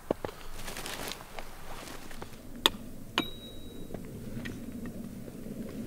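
Branches snap and crack as a man breaks them apart.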